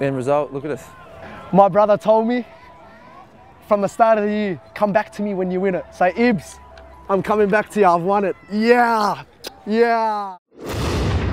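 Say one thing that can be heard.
A young man talks with excitement close to a microphone.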